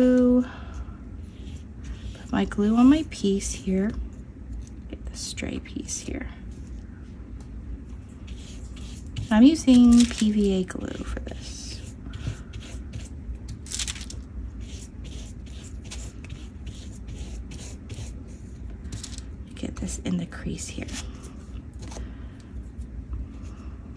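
A stiff brush dabs and scrubs on paper.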